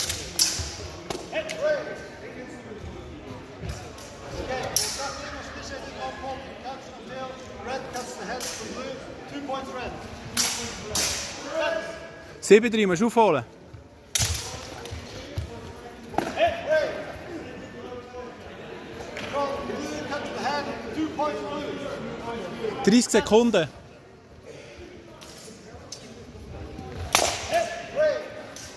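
Steel swords clash and clatter sharply.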